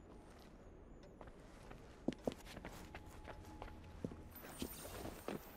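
Footsteps patter quickly on a wooden floor.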